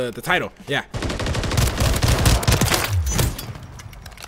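Rapid gunfire rattles at close range.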